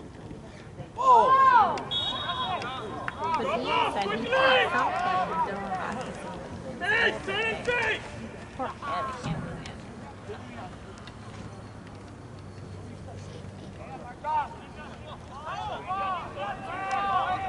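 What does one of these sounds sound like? Spectators shout and cheer loudly nearby, outdoors.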